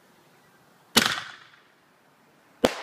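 A firework rocket whooshes sharply into the air.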